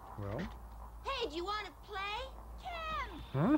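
A young child cries out in a high, excited voice.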